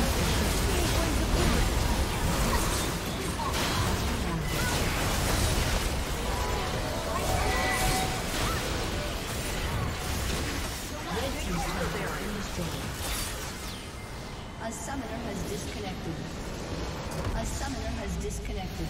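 Game spells and attacks clash with bursts and crackles.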